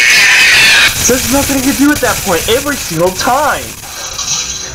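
A man screams and shouts loudly and with panic, close to a microphone.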